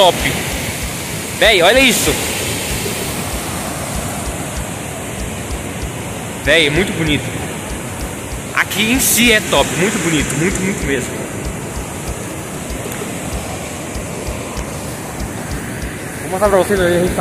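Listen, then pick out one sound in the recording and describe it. A flooded river roars over rapids and a waterfall.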